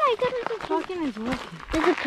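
Footsteps crunch on dry grass and dirt.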